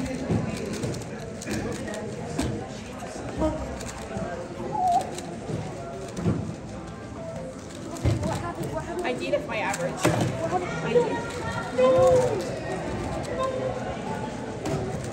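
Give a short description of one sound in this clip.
Children and adults chatter nearby.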